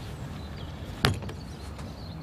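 A door bangs shut.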